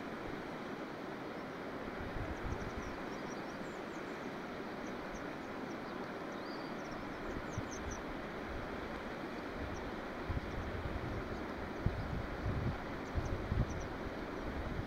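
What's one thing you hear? Wind buffets the microphone outdoors in low, uneven gusts.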